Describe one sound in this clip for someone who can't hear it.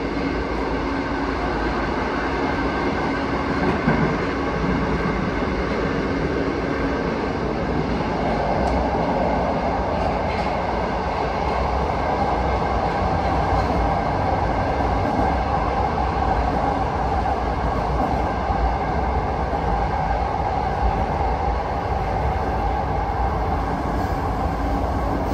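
A subway train rumbles and roars loudly along the tracks.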